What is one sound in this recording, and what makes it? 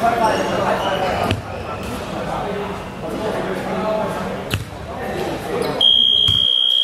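Two men talk calmly with each other in a large echoing hall.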